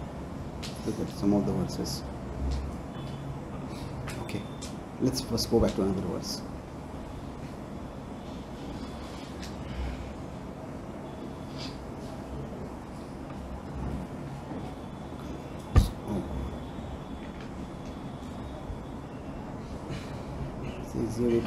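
A man speaks calmly into a microphone, in sparse phrases with long pauses.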